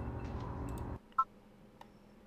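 A short electronic menu beep sounds.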